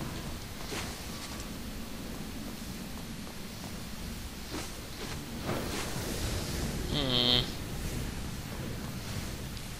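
Sword slashes whoosh sharply in quick bursts.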